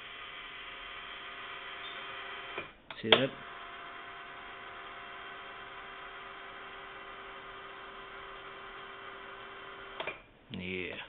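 An electrical device hums steadily.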